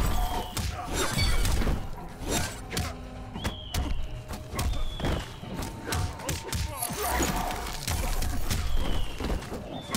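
Ice blasts crackle and shatter.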